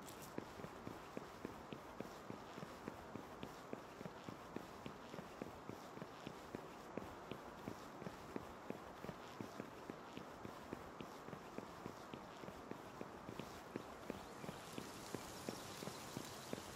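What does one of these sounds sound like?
Quick footsteps run over stone at a steady pace.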